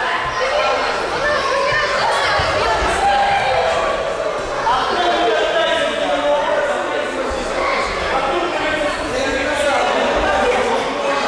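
Many children and adults chatter in a large echoing hall.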